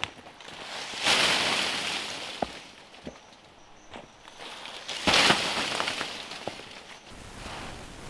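Leafy branches rustle and swish as they are shaken.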